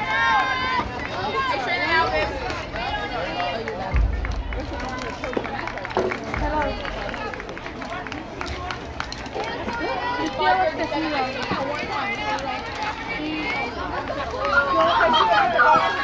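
Young girls shout and cheer across an open field outdoors.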